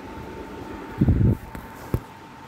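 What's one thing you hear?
Paper rustles as a book page is moved.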